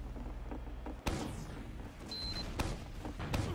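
A gun fires a few loud, sharp shots.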